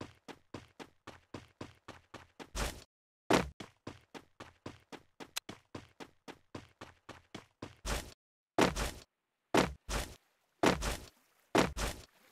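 Quick footsteps patter on hard ground as a game character runs.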